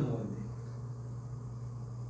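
A young man drinks from a cup.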